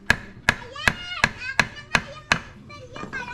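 A hammer strikes metal in rapid, ringing blows.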